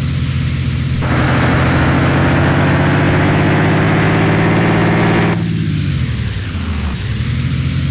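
A bus engine roars louder as the bus speeds up, then winds down.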